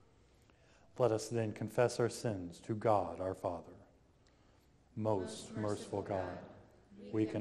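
A man reads aloud, his voice echoing in a large hall.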